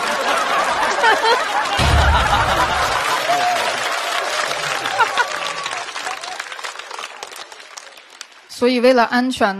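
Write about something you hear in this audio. An audience laughs and applauds loudly in a large hall.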